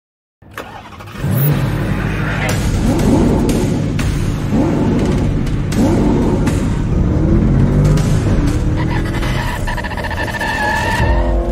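A car engine idles and revs repeatedly.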